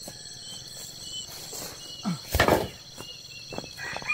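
A bamboo pole scrapes and rustles as it is dragged across grass.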